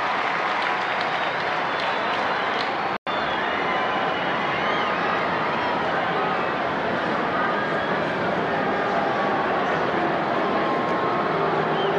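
A huge crowd cheers and roars in a large open stadium.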